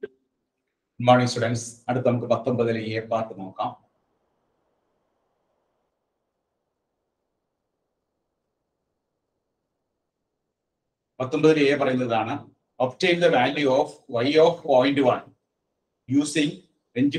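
A middle-aged man speaks calmly and clearly into a nearby microphone, explaining at a steady pace.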